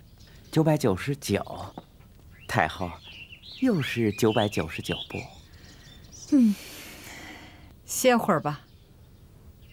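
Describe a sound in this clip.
An elderly man speaks eagerly, close by.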